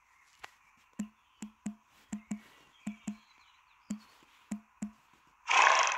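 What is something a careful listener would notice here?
Soft keyboard taps click quickly in a short run.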